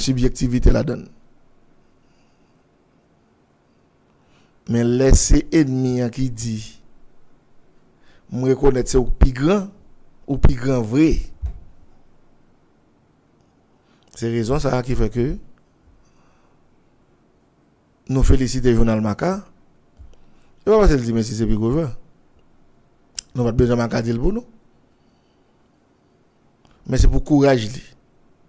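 A man speaks with animation close to a microphone, in short bursts with pauses.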